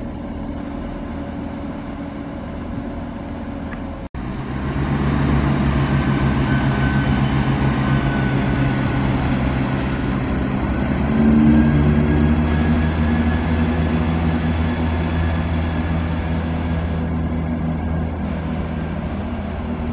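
A diesel train engine rumbles and drones steadily nearby.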